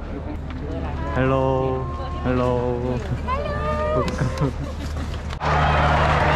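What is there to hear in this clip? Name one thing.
Young women call out and talk cheerfully nearby.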